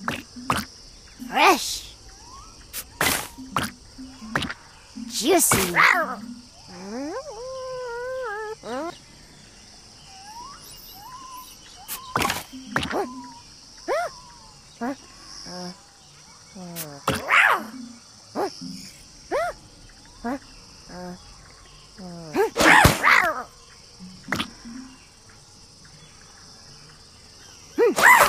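Game sound effects chime and pop as fruit pieces match and burst.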